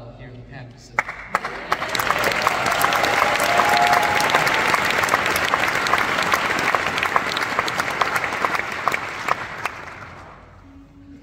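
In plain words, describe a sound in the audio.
An audience applauds and cheers loudly, then fades.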